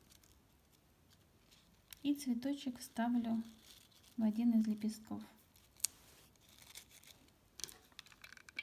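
Satin ribbon rustles softly as fingers fold and press it.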